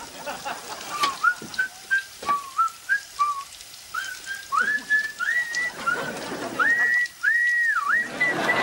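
A young man whistles a tune in short bursts.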